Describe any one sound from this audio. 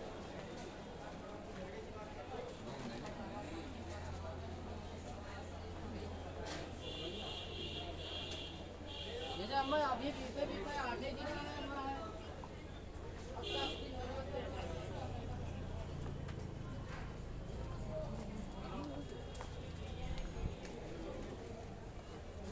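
Men chatter nearby.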